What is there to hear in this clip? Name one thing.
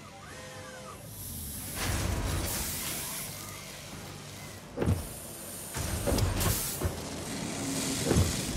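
Factory machines rumble and clank steadily.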